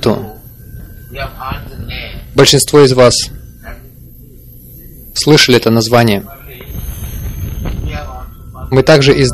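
An elderly man speaks slowly into a microphone, in bursts with pauses.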